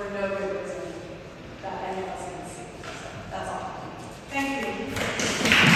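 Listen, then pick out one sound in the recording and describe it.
A young woman speaks calmly into a microphone in an echoing hall.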